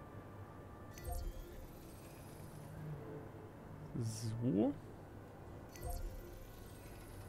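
A game interface gives soft clicks and chimes as buildings are placed.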